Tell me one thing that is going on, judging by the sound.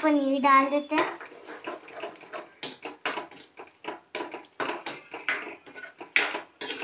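A spoon scrapes and stirs food in a metal pan.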